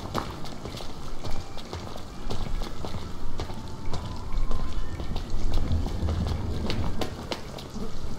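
Footsteps tap on a stone pavement.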